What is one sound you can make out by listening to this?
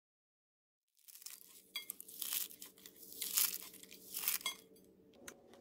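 Crispy fried snacks crunch and crackle as a hand crushes them.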